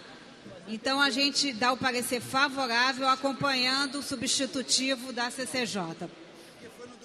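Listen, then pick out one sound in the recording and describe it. A middle-aged woman speaks firmly into a microphone.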